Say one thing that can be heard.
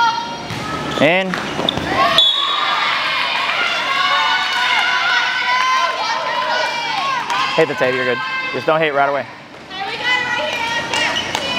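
Young women shout and call to each other in a large echoing hall.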